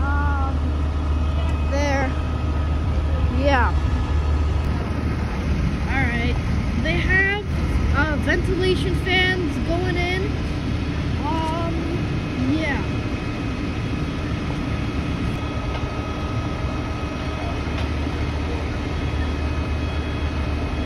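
A fire engine's motor idles with a steady low rumble nearby, outdoors.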